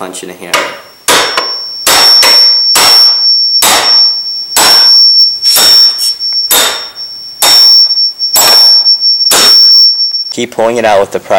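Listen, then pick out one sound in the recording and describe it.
A hammer strikes a metal punch with sharp, ringing blows.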